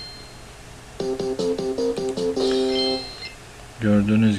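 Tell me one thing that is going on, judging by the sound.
A cheerful electronic jingle plays.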